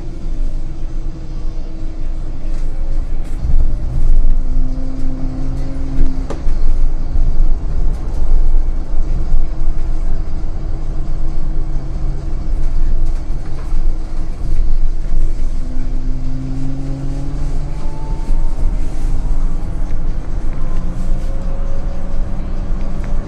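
Tyres rumble on the road beneath a bus.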